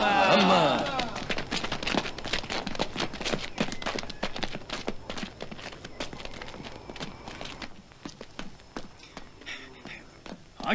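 Footsteps shuffle and tap on hard ground as a group walks.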